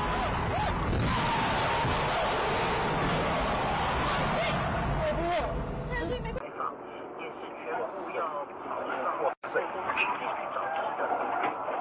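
A car crashes with a loud bang and crunch of metal.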